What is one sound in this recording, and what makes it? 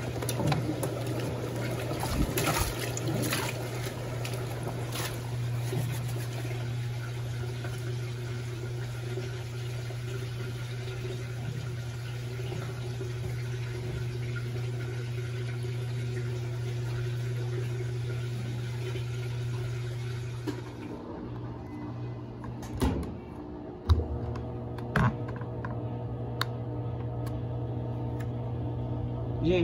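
A washing machine hums steadily as it churns.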